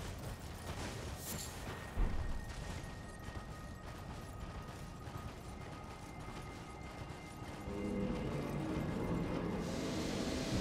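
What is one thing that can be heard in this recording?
Horse hooves thud steadily on snow.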